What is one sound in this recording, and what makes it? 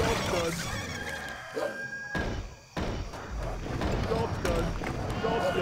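Game units clash in battle with metallic hits and spell effects.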